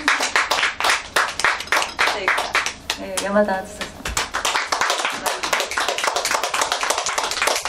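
A crowd claps in fast, steady applause.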